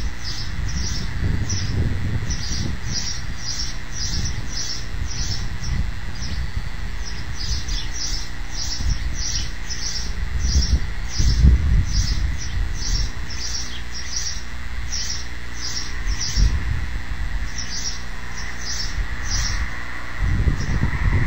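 Wind gusts and rumbles across the microphone outdoors.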